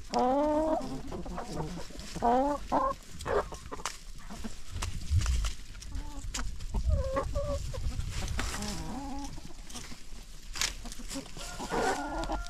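Many hens cluck and squawk close by.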